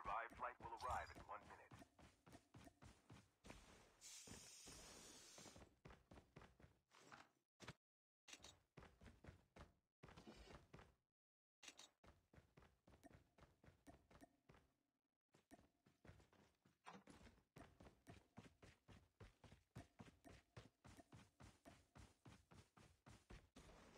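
Quick footsteps run steadily over ground and hard floors.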